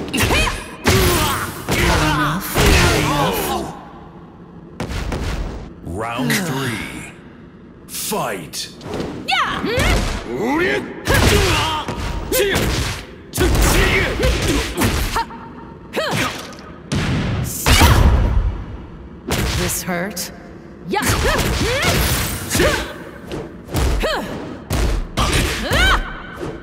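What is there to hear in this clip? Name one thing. Punches and kicks land with sharp, heavy thuds again and again.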